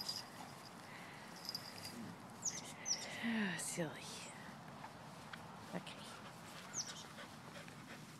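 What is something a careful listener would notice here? A dog rolls and rubs on grass with a soft rustle.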